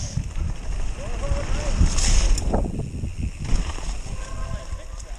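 Bicycle tyres rumble and rattle over a bumpy dirt trail.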